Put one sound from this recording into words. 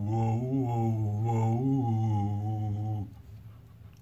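A man sings a long, steady note close by.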